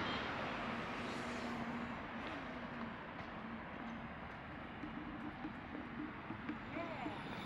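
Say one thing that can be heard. Distant city traffic rumbles steadily.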